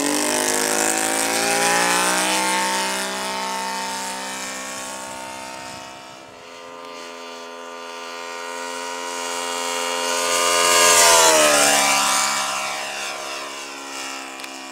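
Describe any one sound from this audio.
A small plane's engine drones overhead, rising and falling in pitch as it passes by.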